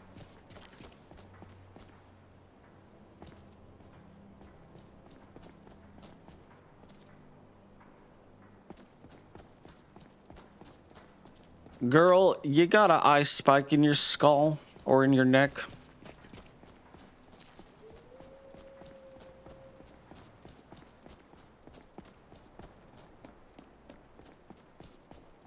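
Footsteps crunch steadily on stony ground.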